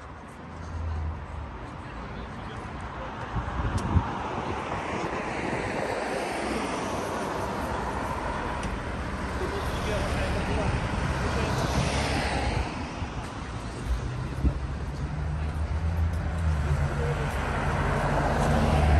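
Cars drive past on a street, tyres hissing on the road.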